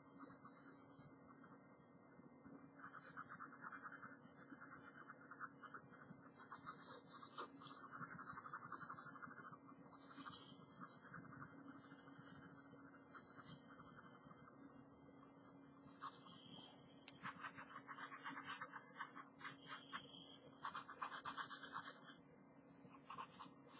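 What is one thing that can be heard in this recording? A marker squeaks and scratches across paper in short strokes.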